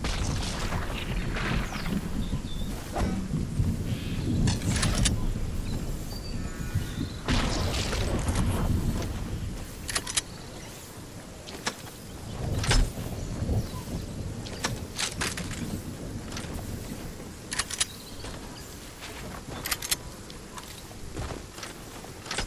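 Game footsteps patter quickly across wooden floors and dirt.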